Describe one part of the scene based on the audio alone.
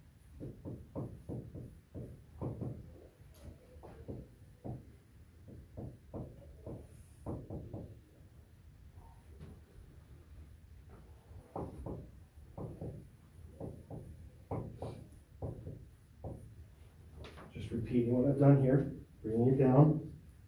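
A man speaks calmly, close by.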